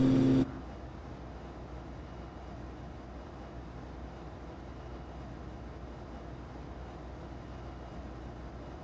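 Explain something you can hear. A propeller aircraft engine drones steadily.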